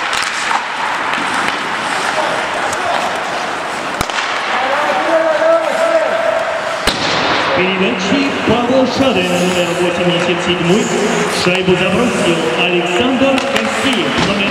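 Ice skates scrape and hiss across the ice in a large echoing hall.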